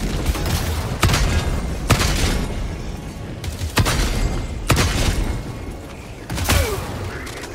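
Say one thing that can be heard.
Heavy gunshots boom one at a time with a ringing echo.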